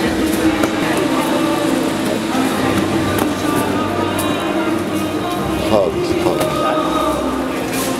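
Cardboard rustles as a box is unpacked.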